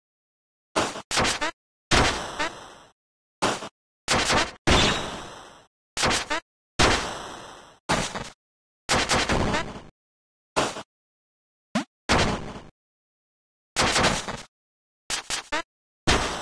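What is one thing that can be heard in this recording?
Retro video game punches and blasts burst out in short, sharp bursts.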